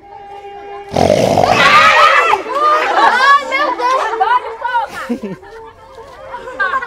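A woman laughs loudly up close.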